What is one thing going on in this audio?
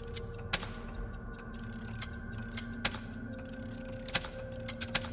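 A clock mechanism clicks sharply now and then.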